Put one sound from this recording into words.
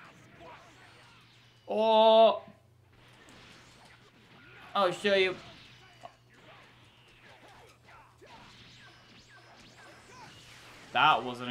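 Energy blasts whoosh and crackle during a fast fight.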